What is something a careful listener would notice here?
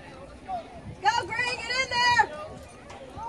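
Someone in the crowd nearby shouts loudly.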